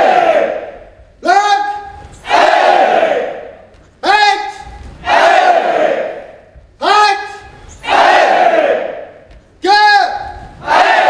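A large group of people shouts together in unison, echoing in a large hall.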